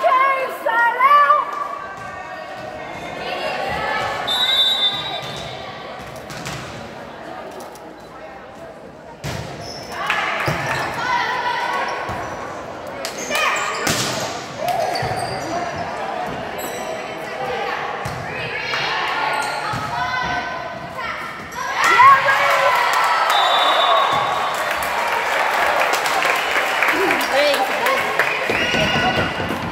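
Young women players call out and shout during play.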